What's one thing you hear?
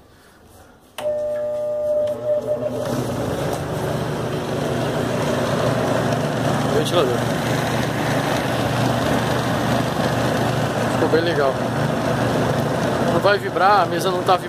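A small washing-machine motor hums as it spins a pulley.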